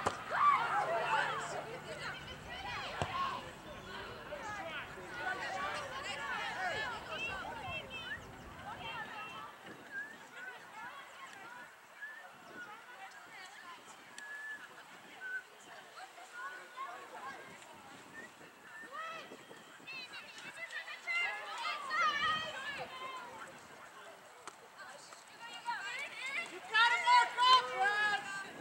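Young women shout and call out to each other across an open field, heard from a distance outdoors.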